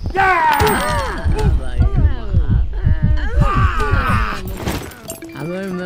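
A fist punches a man in quick, heavy blows.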